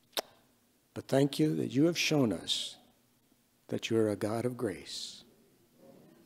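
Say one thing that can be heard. An elderly man speaks calmly into a microphone in a slightly echoing room.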